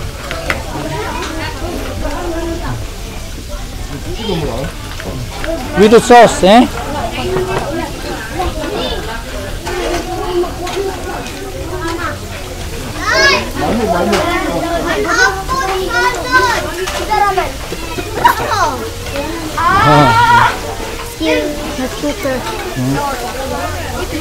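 Meat sizzles on a hot grill pan.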